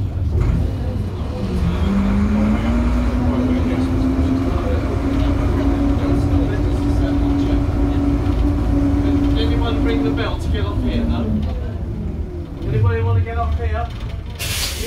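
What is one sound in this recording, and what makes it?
A bus engine hums and rumbles steadily.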